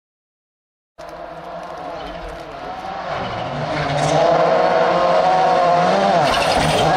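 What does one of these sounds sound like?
A rally car engine roars closer, revving hard.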